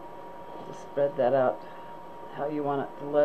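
An elderly woman speaks calmly, close to a microphone.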